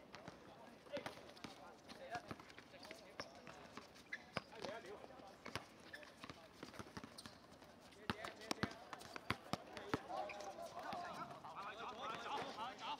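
A ball is kicked with dull thuds on a hard outdoor court.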